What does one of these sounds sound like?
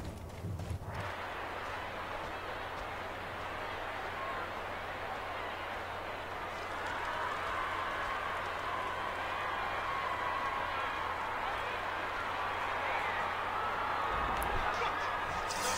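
A large crowd roars and cheers in a vast open arena.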